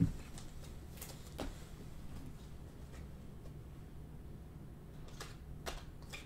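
Trading cards rustle and slide against each other as they are flipped.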